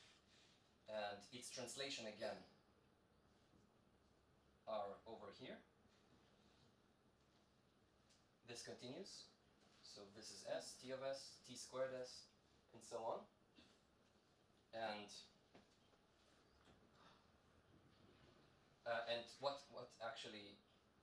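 A young man speaks calmly, in pauses.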